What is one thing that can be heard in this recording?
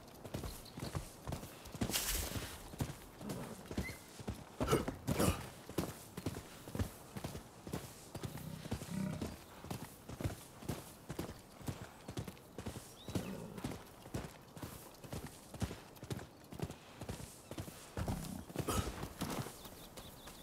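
A horse's hooves gallop steadily over soft ground.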